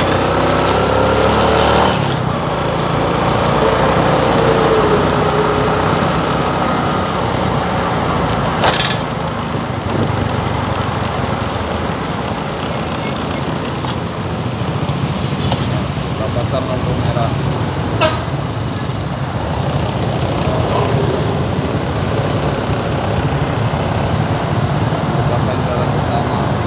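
A motorbike engine hums steadily up close while riding.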